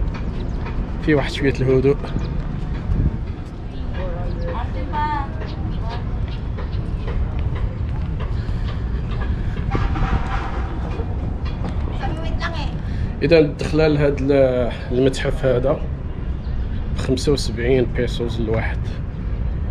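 A middle-aged man talks close to the microphone outdoors.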